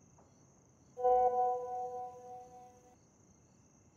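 A phone chimes with a message alert.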